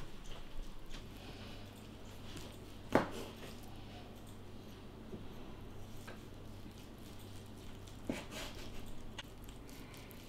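A knife crunches through a crisp breaded roll on a wooden board.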